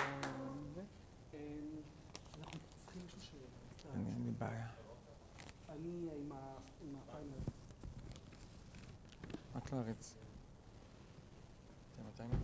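A man speaks in a calm, conversational voice, heard from a short distance in a slightly echoing room.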